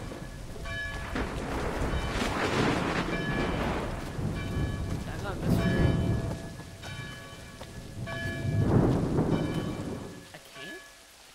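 Rain pours down outdoors in gusting wind.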